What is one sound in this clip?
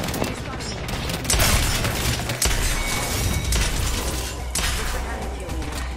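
Rapid gunshots rattle loudly.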